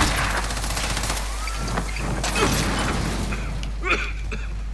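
An explosion booms and fades.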